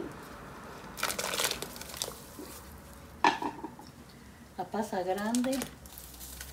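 Liquid splashes as it is ladled from a pot into a bowl.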